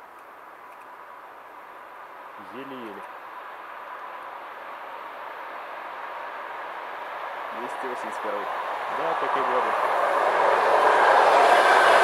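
A train approaches along the rails, rumbling louder and louder.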